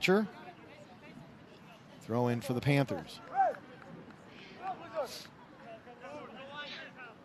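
Young men shout to each other across an outdoor field.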